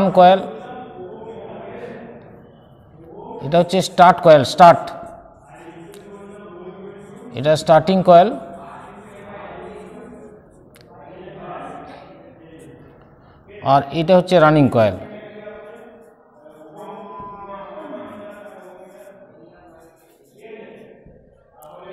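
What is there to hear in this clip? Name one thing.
A middle-aged man speaks calmly, explaining.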